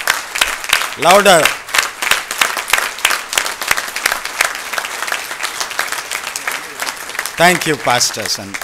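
A man in the audience whoops loudly.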